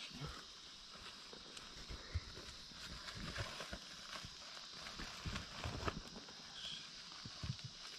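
Soil pours and rustles into a basket from a plastic sheet.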